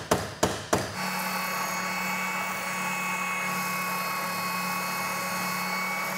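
A sanding machine hums steadily.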